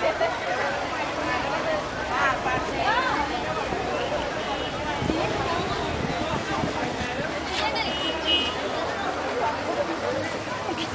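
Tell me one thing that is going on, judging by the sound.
A crowd of women and girls chatter close by outdoors.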